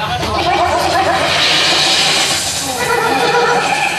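A crowd cheers and shouts close by.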